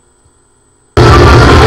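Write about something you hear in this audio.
Video game sound plays loudly over loudspeakers.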